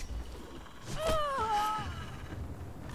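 A creature lets out a shrill, wavering cry.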